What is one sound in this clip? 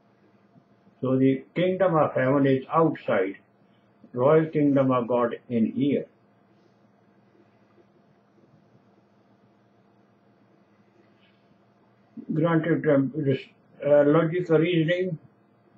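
An elderly man speaks calmly and close to the microphone, in short bursts with long pauses.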